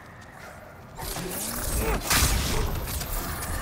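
A magical blast whooshes and roars loudly.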